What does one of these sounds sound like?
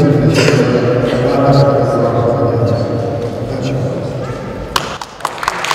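A middle-aged man speaks calmly into a microphone over loudspeakers in a large echoing hall.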